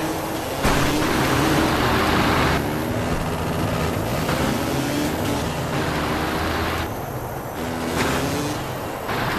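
A dirt bike engine revs and whines steadily, rising and falling in pitch.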